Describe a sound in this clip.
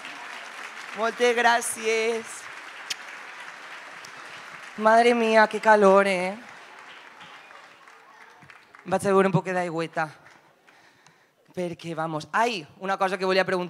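A young woman sings into a microphone in short phrases.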